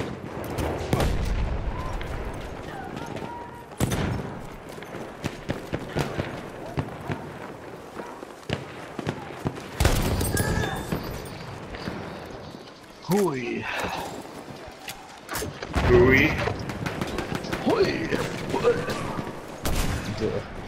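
A rifle fires sharp, booming shots now and then.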